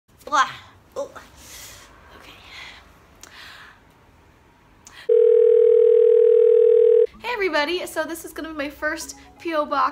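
A young woman talks cheerfully and with animation close by.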